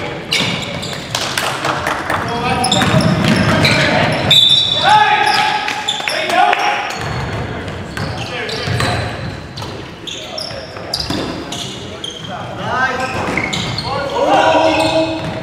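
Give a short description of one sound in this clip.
Sneakers squeak sharply on a wooden court in an echoing gym.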